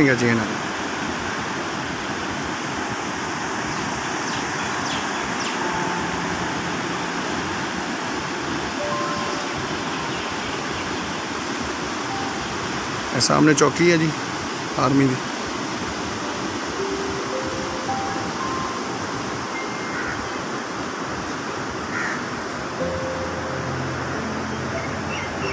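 Water rushes and churns steadily over a weir.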